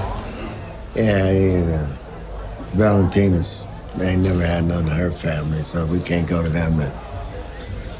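A man speaks calmly and closely in a low voice.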